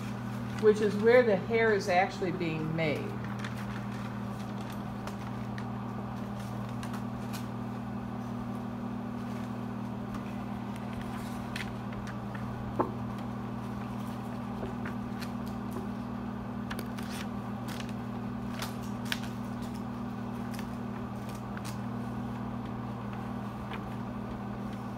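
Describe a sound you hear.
A projector fan hums steadily nearby.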